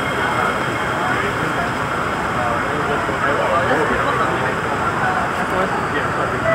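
A train rolls out of a station with an electric hum.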